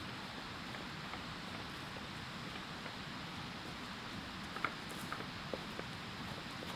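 A heavy log drags and scrapes across grass.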